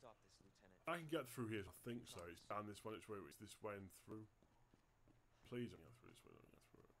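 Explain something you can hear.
A man speaks calmly close to a microphone.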